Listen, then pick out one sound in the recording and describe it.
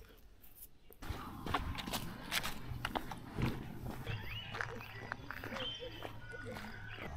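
Footsteps crunch on damp leaves and dirt.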